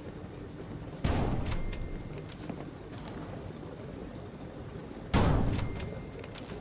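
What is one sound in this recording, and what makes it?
A heavy metal object clanks into place.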